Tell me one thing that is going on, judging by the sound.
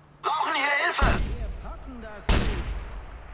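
A rifle fires loud shots that echo.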